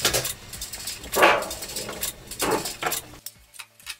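Sheet metal scrapes and clanks against a metal bench.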